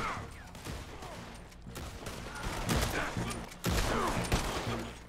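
Revolver shots bang out several times, close by.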